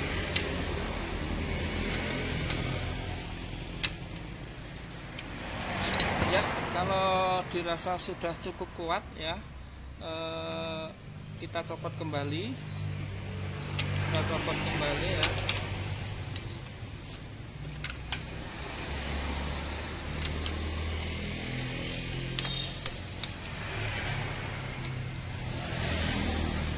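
A metal wrench clicks and clinks against an engine.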